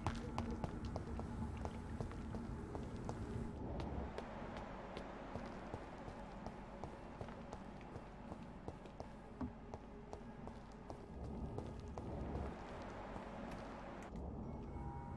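Footsteps patter quickly on cobblestones.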